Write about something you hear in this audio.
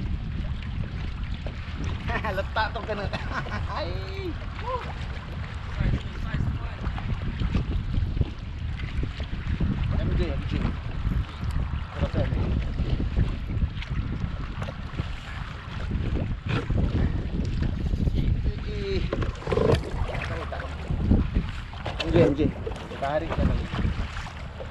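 Wind blows hard outdoors across open water.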